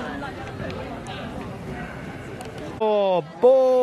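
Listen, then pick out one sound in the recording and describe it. Young women talk quietly in a huddle outdoors.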